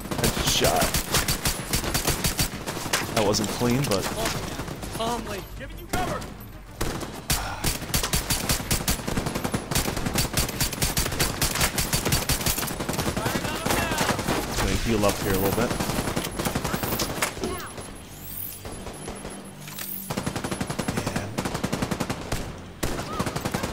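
Rapid gunfire from an automatic rifle rattles.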